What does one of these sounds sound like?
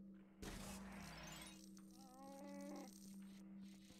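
Coins chime as they are picked up in a video game.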